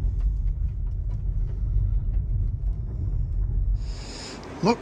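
A car engine rumbles low while driving.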